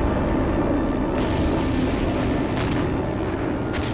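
A loud blast rumbles and echoes outdoors.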